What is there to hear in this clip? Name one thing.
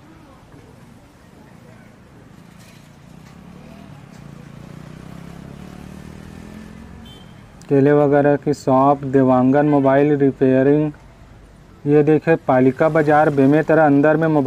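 Motorcycle engines hum nearby on a street.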